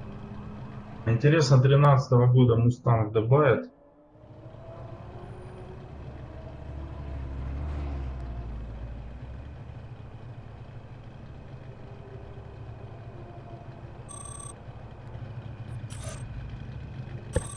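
A car engine idles with a low rumble.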